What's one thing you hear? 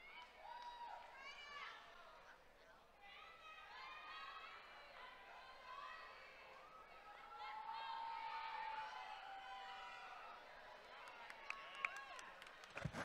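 A crowd cheers and whoops loudly in a large echoing hall.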